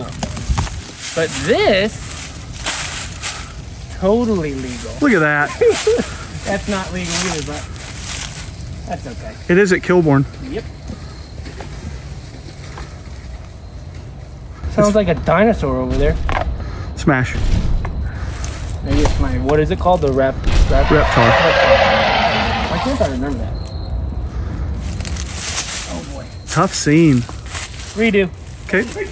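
A young man talks with animation close by, outdoors.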